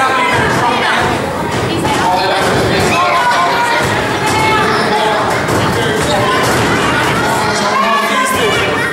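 Children shout excitedly close by.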